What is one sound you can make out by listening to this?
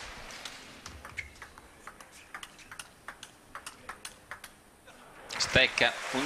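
A table tennis ball clicks back and forth in quick hits.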